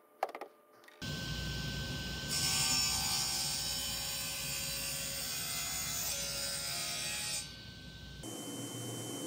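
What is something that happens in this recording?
A table saw whines as it cuts through wood.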